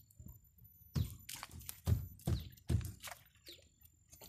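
Small fish flap and thrash in a plastic basket.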